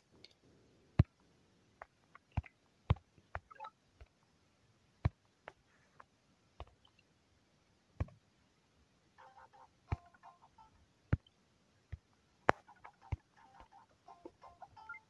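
Short soft clicks from a game interface sound now and then.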